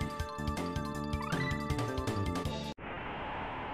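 Video game music plays.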